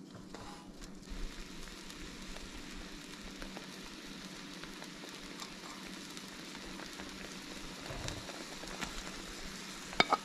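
Sauce bubbles and sizzles softly in a pan.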